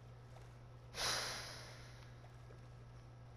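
A horse splashes loudly close by.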